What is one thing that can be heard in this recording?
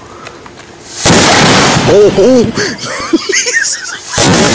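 A firework goes off with a loud bang and crackling.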